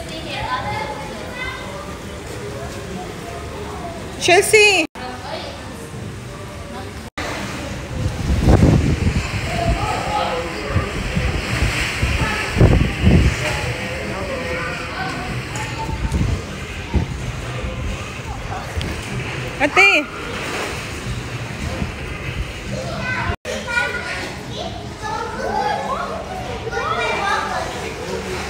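Young children talk and call out nearby.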